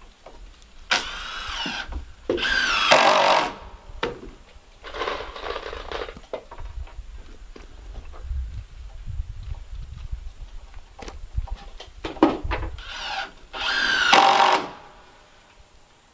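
A power drill whirs in short bursts, driving screws into wood.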